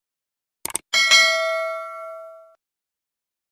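A bell chimes and rings out.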